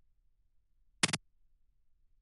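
A short electronic blip sounds.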